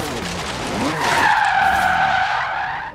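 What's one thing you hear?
Tyres screech as a car slides sideways.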